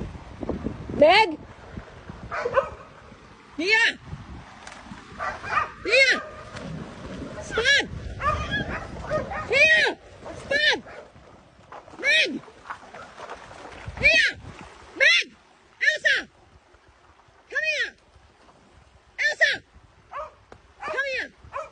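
Dogs bark loudly and repeatedly.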